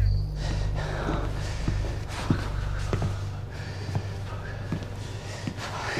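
Footsteps tap slowly across a hard floor in an echoing room.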